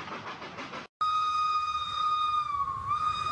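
A small model train's motor whines steadily.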